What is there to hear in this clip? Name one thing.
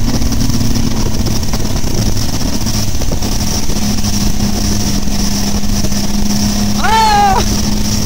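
Water rushes and sprays behind a speeding boat.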